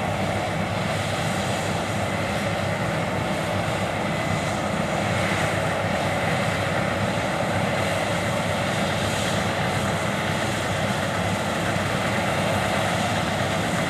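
A combine harvester's engine drones steadily nearby.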